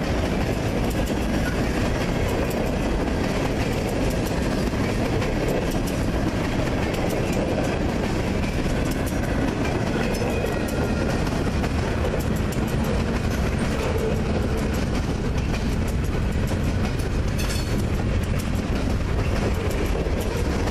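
Freight car wheels click over rail joints.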